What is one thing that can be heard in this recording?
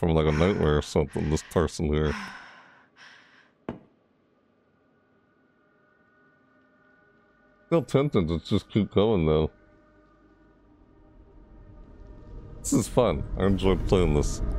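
A young man talks close to a microphone in short bursts.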